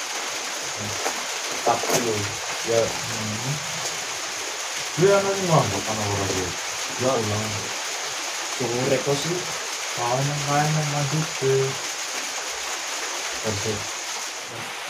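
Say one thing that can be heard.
Young men talk casually close by.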